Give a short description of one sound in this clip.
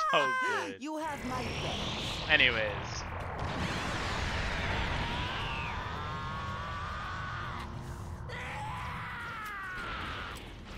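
A deep energy rumble swells and roars.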